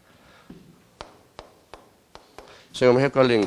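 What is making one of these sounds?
Chalk taps against a board.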